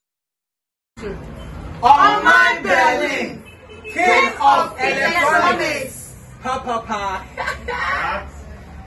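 A group of young men and women shout and cheer together loudly.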